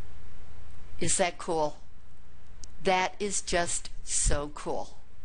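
An older man speaks calmly and clearly into a close microphone.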